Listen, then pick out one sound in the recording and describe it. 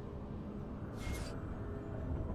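A video game character casts a spell with a short whooshing burst.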